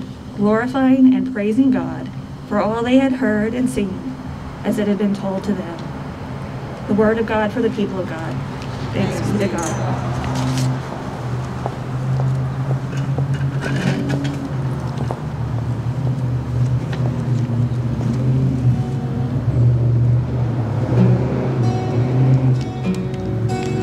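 An acoustic guitar plays softly.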